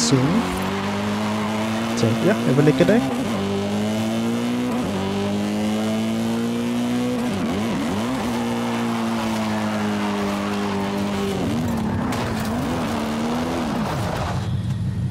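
A car engine revs hard and shifts through gears.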